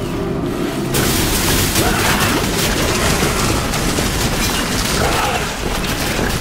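Magic blasts and fiery explosions crackle and boom in rapid succession.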